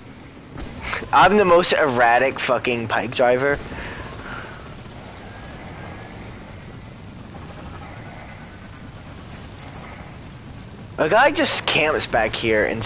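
A man speaks with animation close to a headset microphone.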